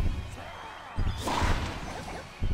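A tennis racket strikes a ball with a sharp whack.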